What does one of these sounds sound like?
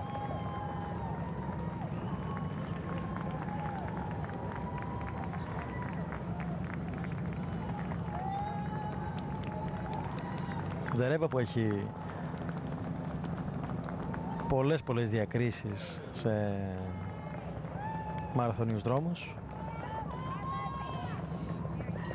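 A crowd of spectators cheers and claps along the roadside.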